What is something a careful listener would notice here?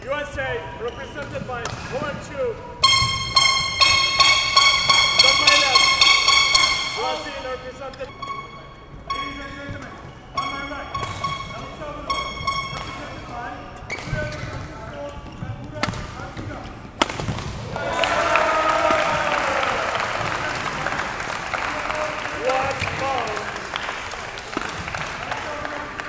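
Sneakers squeak on a court floor.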